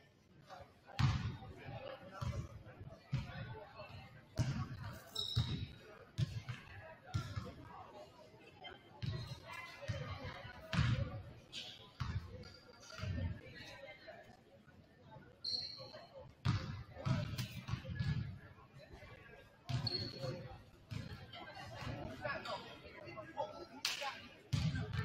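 A basketball bounces with loud, echoing thumps in a large hall.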